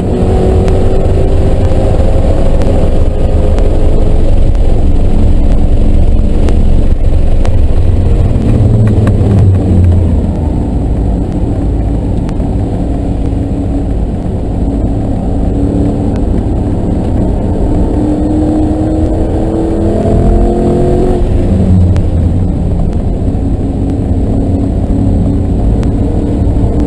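A car engine roars loudly close by, rising and falling in pitch.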